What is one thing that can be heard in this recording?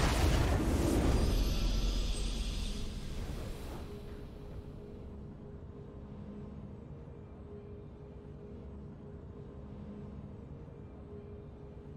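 A triumphant victory fanfare swells.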